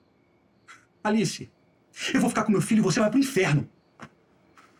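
A young man speaks with urgency, close by.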